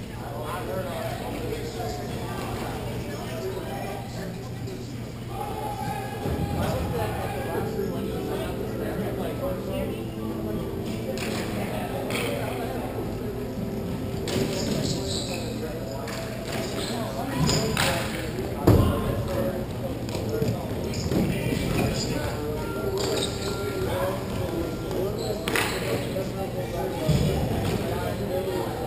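Skates scrape across a rink in a large echoing hall.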